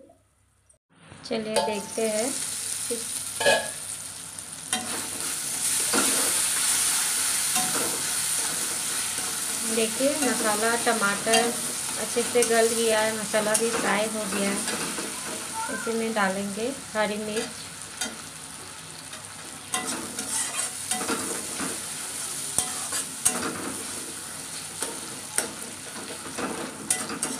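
Food sizzles in hot oil in a wok.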